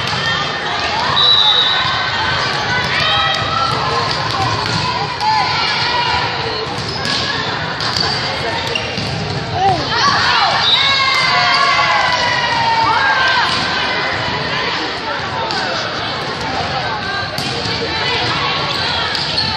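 Young women players call out to each other on the court.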